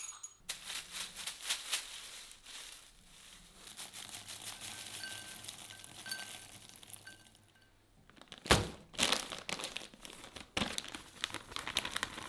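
A plastic bag crinkles and rustles in a hand.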